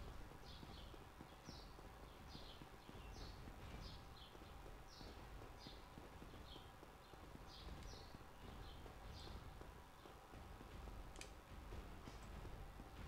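Quick footsteps run across a stone floor, echoing in a large hall.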